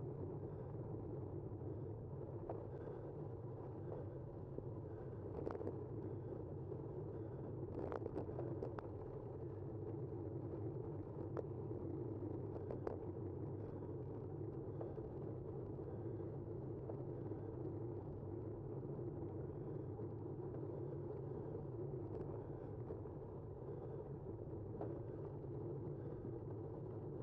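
Tyres roll steadily over rough pavement.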